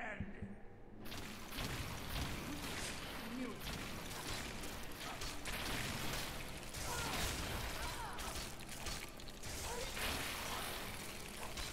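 Swords clash and hit in a fierce fight.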